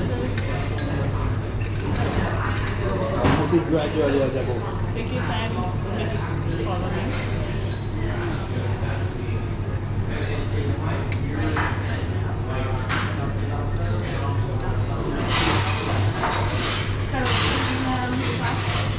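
Two men talk casually nearby.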